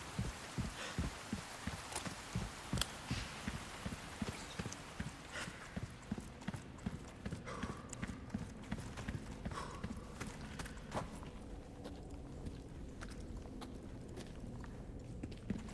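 Footsteps crunch on rough ground at a steady walking pace.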